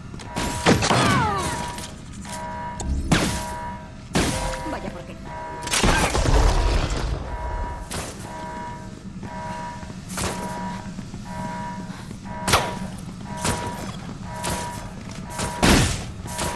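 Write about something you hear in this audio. Heavy blows land with sharp thuds and crashes.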